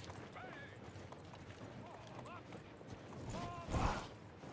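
Horses' hooves tramp over dry ground.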